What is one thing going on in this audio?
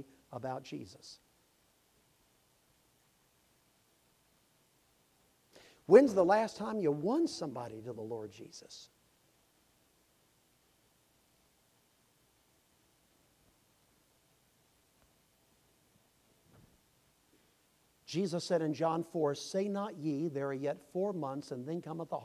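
An elderly man speaks through a microphone with long pauses, in a large echoing hall.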